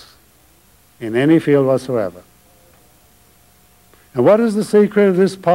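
An elderly man speaks slowly and deliberately into a microphone, with long pauses.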